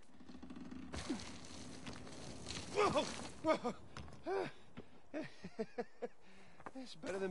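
A man chuckles and speaks with relief.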